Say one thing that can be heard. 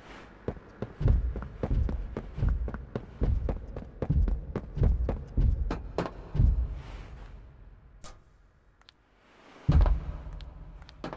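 Heavy footsteps thud in a slow, steady rhythm.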